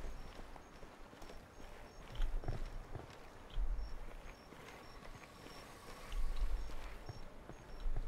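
Footsteps shuffle slowly over gravel.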